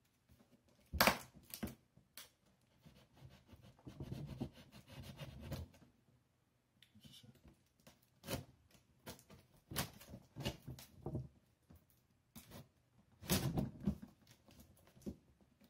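Scissors snip and scrape against cardboard.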